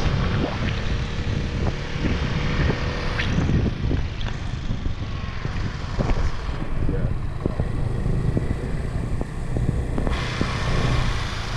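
Wind buffets the microphone on a moving scooter.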